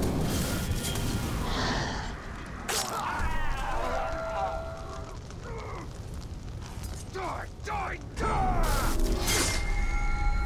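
A fire crackles nearby.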